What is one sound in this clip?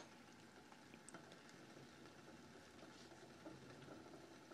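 A metal spoon scrapes and clinks in a ceramic bowl.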